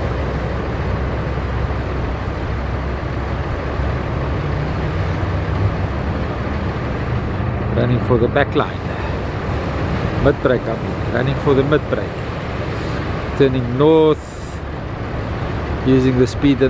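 A boat's outboard engine roars over the water.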